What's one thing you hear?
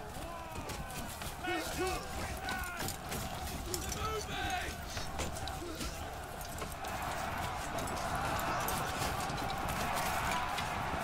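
A crowd of men shouts and yells in battle.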